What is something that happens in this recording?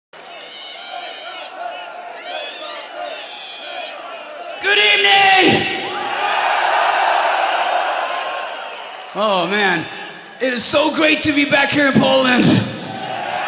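A crowd cheers and whistles loudly in a large hall.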